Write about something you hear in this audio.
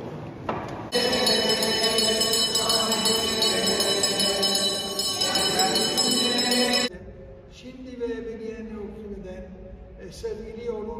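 An elderly man chants through a microphone in a large echoing hall.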